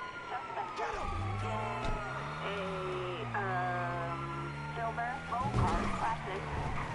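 A car engine runs and revs as the car drives off.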